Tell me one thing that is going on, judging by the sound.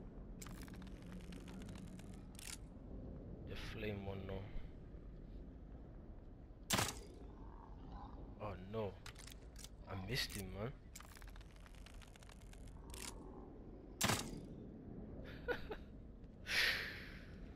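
A crossbow fires bolts with sharp snaps.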